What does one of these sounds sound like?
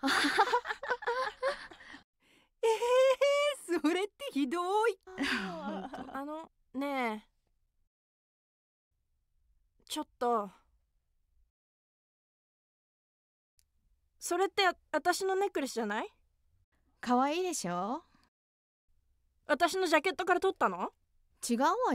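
Young women talk cheerfully by turns, close by.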